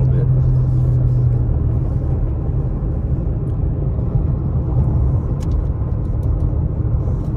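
Tyres rumble low and steady on the road.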